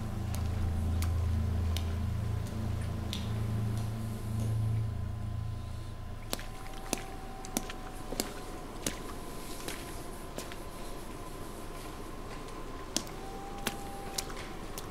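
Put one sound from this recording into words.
Footsteps splash slowly through shallow water in an echoing tunnel.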